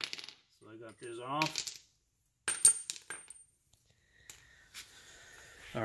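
Metal parts clink on a hard floor.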